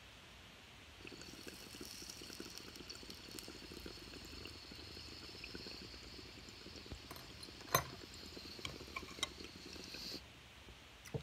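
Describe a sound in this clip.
Water bubbles and gurgles in a glass pipe as a man inhales.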